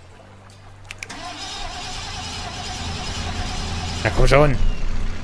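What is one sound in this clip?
A small boat motor hums steadily and grows louder.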